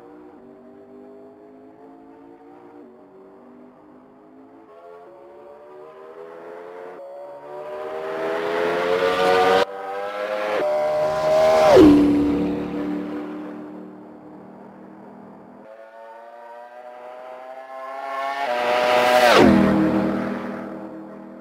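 A racing car engine whines loudly, rising in pitch as it speeds up and dropping sharply as it roars past.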